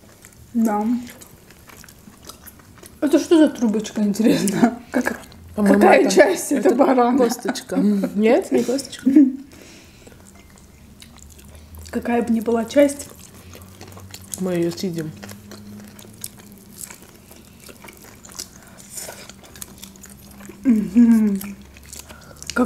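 A young woman chews food with soft wet smacking sounds.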